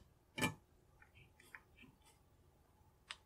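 A screwdriver scrapes against metal.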